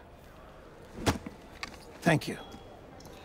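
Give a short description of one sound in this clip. A middle-aged man says a short thank you.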